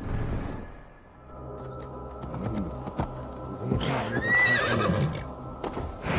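A horse's hooves thud over the ground.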